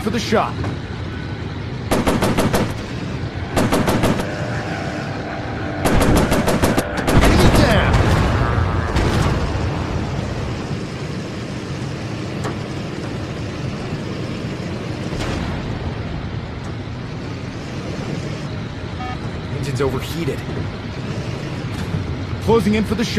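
A propeller plane's engine drones steadily throughout.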